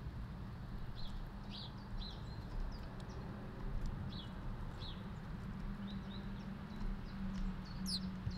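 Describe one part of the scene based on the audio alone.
Small birds chirp in short bursts nearby.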